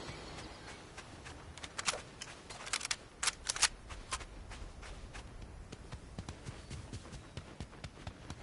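Footsteps patter quickly over sand and stony ground.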